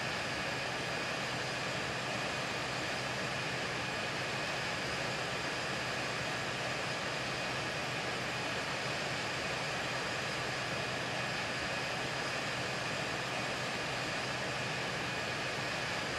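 Jet engines roar steadily in flight.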